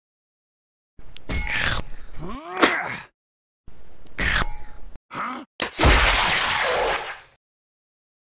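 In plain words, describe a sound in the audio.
A sword whooshes through the air and strikes.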